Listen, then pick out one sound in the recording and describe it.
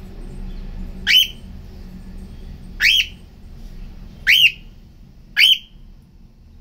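A cockatiel whistles loud, rising chirps close by, a few times.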